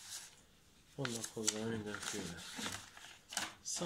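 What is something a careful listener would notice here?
Paper pages rustle as a booklet is handled.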